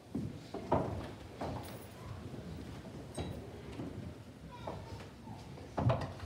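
Footsteps shuffle on a carpeted floor as people move about.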